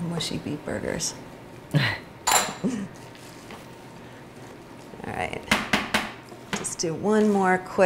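A spatula scrapes and knocks against a plastic bowl.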